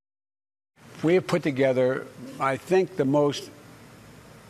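An elderly man speaks calmly into a microphone, heard through an online call.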